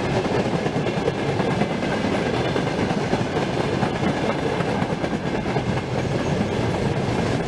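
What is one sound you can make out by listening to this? Freight wagons rumble and clatter past on the rails.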